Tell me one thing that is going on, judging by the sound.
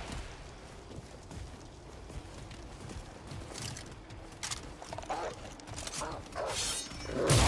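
Footsteps crunch on stone.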